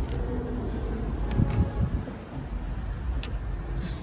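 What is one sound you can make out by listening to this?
A car boot mat rustles and scrapes as it is lifted.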